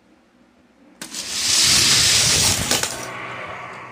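Toy cars rattle and roll quickly down a plastic track.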